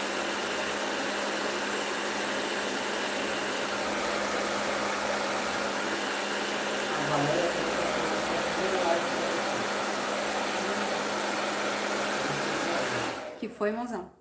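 A hair dryer blows with a steady roar.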